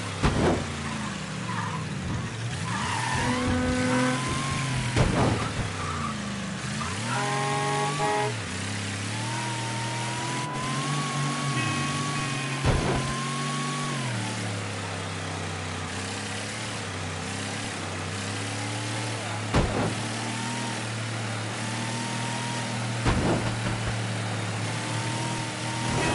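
A car engine hums steadily and rises and falls in pitch as the car speeds up and slows down.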